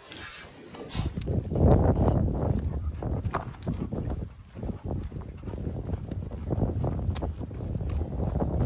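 A dog pants heavily close by.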